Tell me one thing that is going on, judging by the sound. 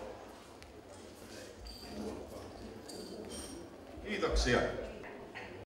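People chatter nearby in a crowded room.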